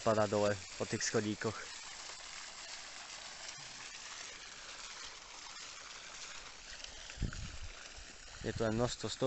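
A small fountain splashes and trickles steadily.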